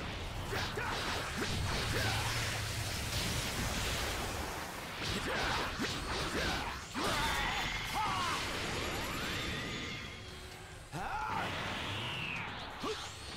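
Energy blasts whoosh and explode loudly.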